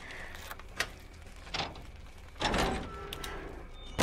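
A heavy lock clunks open on a door.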